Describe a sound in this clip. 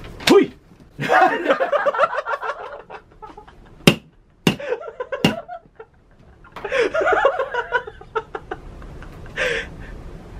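A middle-aged man laughs loudly.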